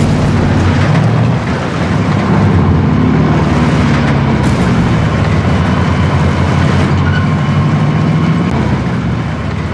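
A truck engine rumbles loudly and steadily.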